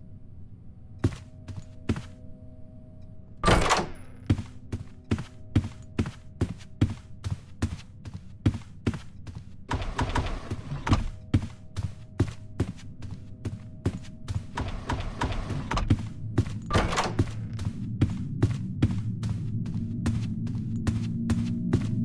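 Footsteps tap quickly and steadily on a wooden floor.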